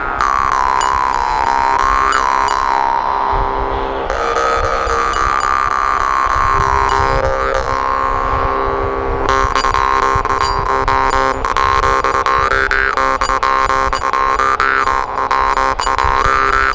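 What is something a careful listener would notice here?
A man plays a reedy, wavering melody on a small mouth instrument up close.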